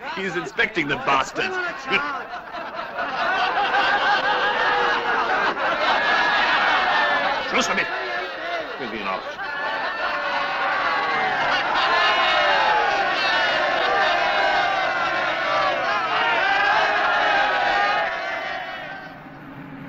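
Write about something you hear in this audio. A crowd of men cheers and shouts loudly outdoors.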